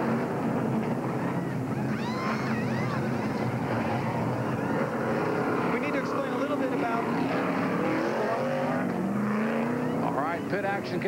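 Race car engines roar loudly as the cars pull out onto the track.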